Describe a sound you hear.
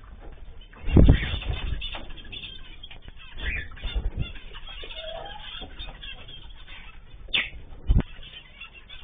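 A bird's feet thump on a wire cage.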